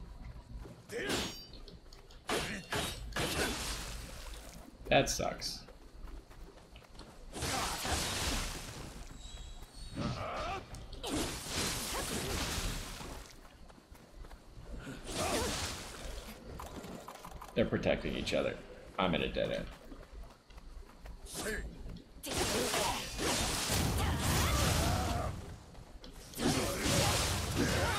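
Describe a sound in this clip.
Swords clash and slash sharply in a fight.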